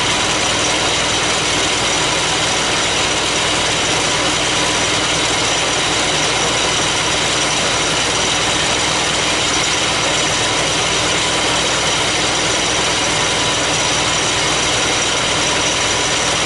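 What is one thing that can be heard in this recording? A milling cutter grinds steadily through metal with a loud whine.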